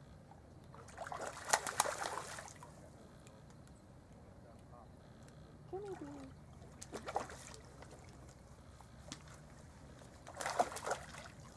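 A fish splashes and thrashes at the water's surface close by.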